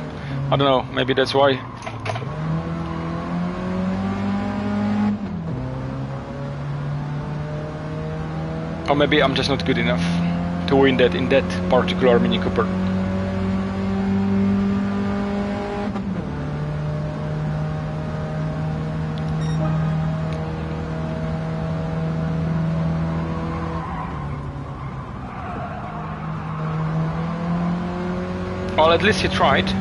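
A small car engine drones steadily, rising and falling in pitch as gears change.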